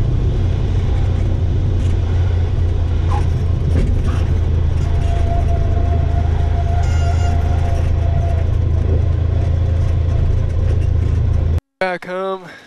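A small plane's propeller engine drones steadily and loudly.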